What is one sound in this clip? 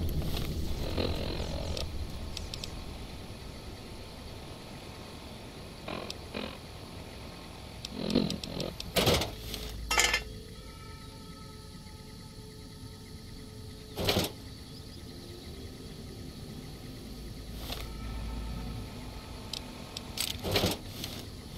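Short electronic beeps and clicks sound as menu items are selected.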